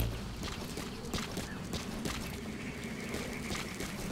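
Running footsteps crunch on a dirt track.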